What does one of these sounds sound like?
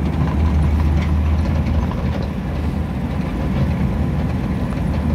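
Tyres roll steadily on the road surface.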